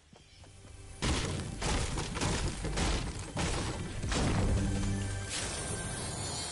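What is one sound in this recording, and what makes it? A pickaxe strikes wood with sharp, repeated knocks.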